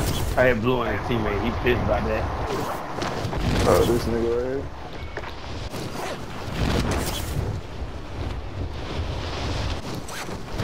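Wind rushes past steadily in a freefall.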